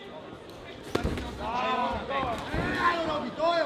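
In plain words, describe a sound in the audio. Gloved punches thud against a body and gloves.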